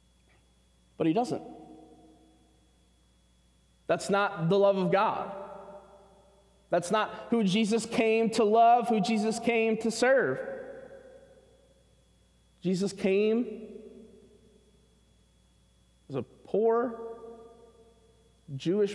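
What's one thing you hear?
A man speaks with animation in bursts, echoing in a large reverberant hall.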